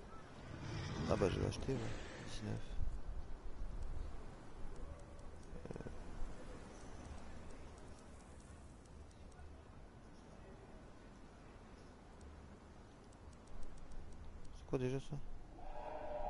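Soft menu clicks tick as selections change.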